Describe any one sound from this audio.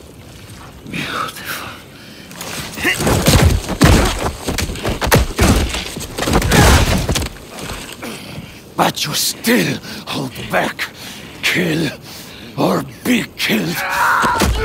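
A man speaks in a low, menacing voice close by.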